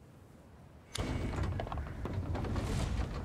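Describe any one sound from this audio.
Wooden windmills creak as they turn.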